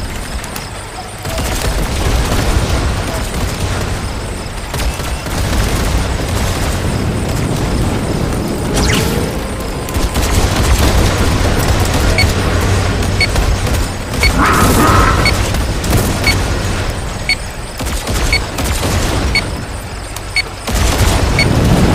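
Video game weapons fire and explode rapidly.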